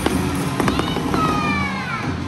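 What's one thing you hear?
A boy beats a large drum with sticks.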